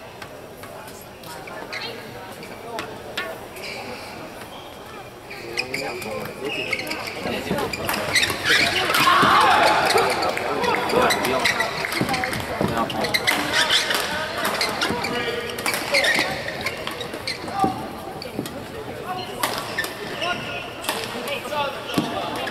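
A crowd in a large echoing hall cheers and murmurs.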